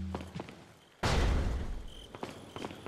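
A heavy door swings open with a loud thud.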